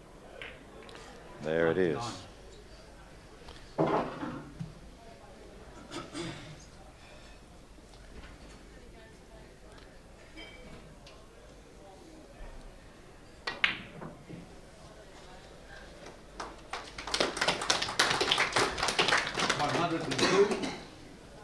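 Billiard balls click together on a table.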